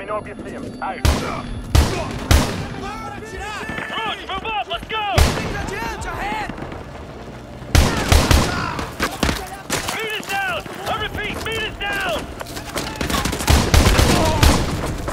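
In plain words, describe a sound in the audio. Gunshots crack in short bursts, close by.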